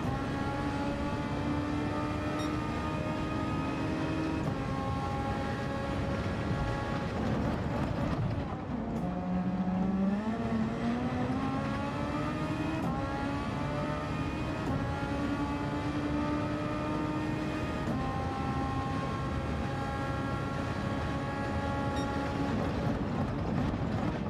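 A racing car engine roars at high revs, rising through the gears.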